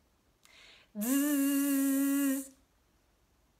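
A young woman sings a long, steady note close by.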